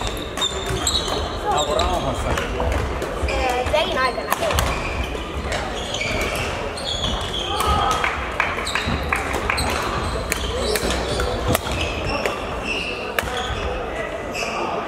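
Rackets strike shuttlecocks with sharp pops in a large echoing hall.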